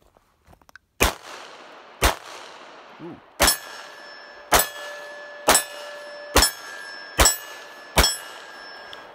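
Pistol shots crack loudly one after another outdoors, each echoing off into the distance.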